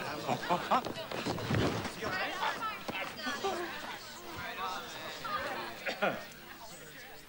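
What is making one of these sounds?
A crowd of people talk and shout over each other in a commotion.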